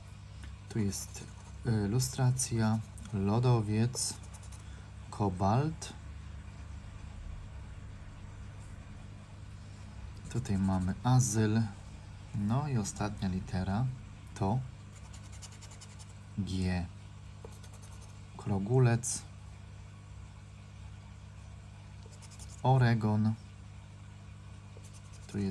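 A hard edge scrapes across a stiff card.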